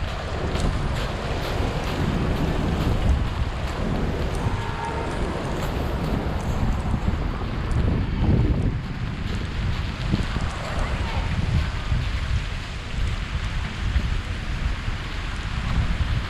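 Cars drive past on a slushy street.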